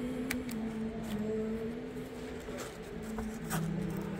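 A metal handbag clasp clicks open.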